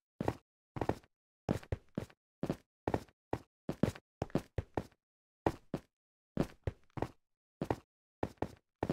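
Footsteps tap quickly on hard stone.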